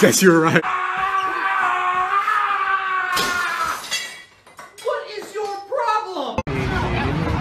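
A young man yells loudly and at length nearby.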